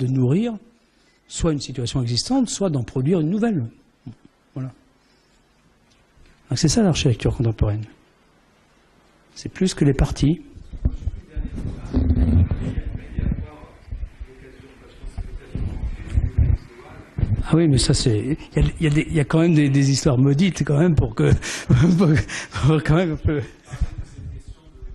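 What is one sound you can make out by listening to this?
An elderly man speaks calmly through a microphone in an echoing hall, pausing now and then.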